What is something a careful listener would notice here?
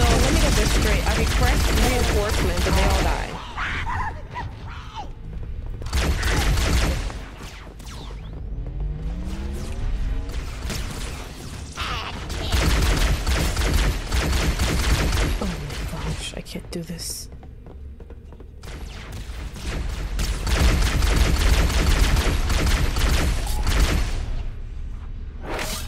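Energy weapons fire in rapid bursts with loud electronic blasts.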